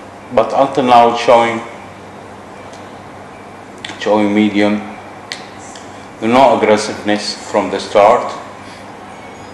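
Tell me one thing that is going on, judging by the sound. A man speaks calmly and slowly, close by, in short phrases with pauses.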